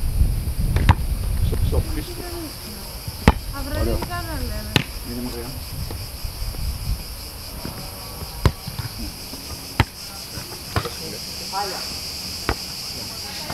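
A foot kicks a football with a sharp thump outdoors.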